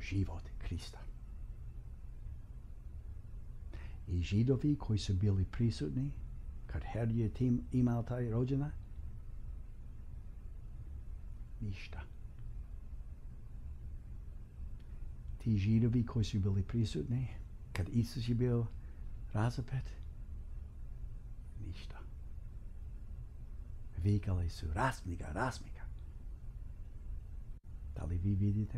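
A middle-aged man speaks calmly and clearly into a close microphone, with pauses between phrases.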